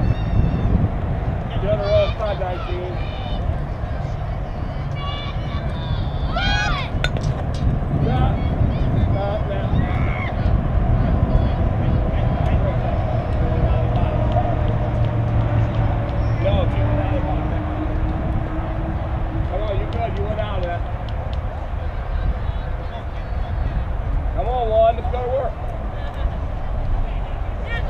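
Young girls shout and cheer across an open field outdoors.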